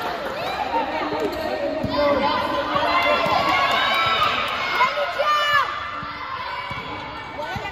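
Young girls shout and call out in a large echoing hall.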